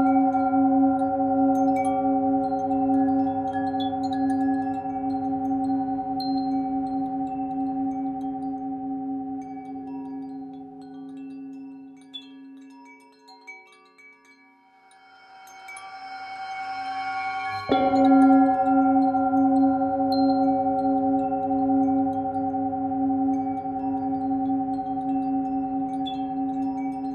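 A singing bowl rings with a steady, wavering hum that fades away and then swells up again.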